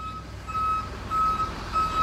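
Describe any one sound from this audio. A truck engine rumbles nearby.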